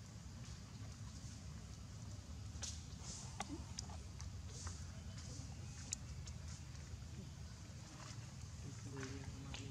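Dry leaves rustle faintly as a baby monkey shifts on the ground.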